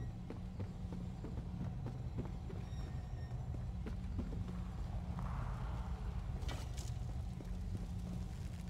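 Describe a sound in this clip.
Footsteps run.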